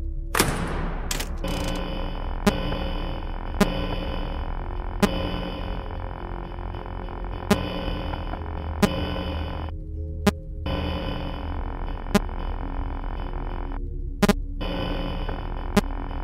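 Sharp electronic clicks sound every second or two.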